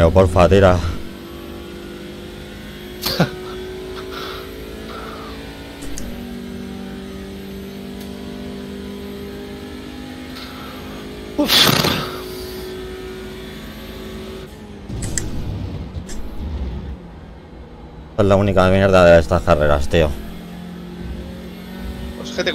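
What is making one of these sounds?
A racing car engine drones steadily, shifting pitch with gear changes.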